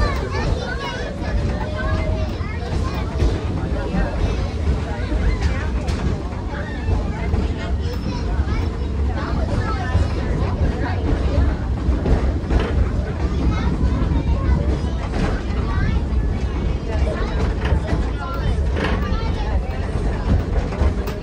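An open train rumbles and rattles steadily along its track outdoors.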